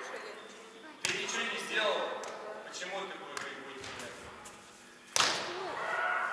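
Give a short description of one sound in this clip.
A volleyball is struck hard with a sharp smack that echoes through a large hall.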